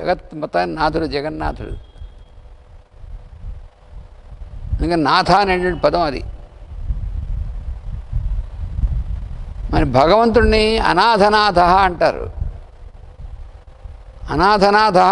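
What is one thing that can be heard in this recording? An elderly man chants in short sung phrases through a microphone, with pauses between them.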